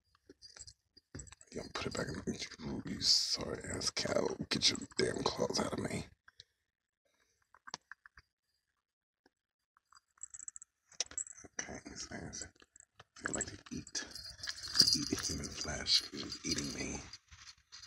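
Fur and fabric rustle and brush right up close.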